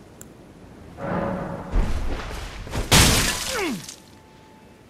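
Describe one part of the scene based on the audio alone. Heavy blows strike a large creature with crunching thuds.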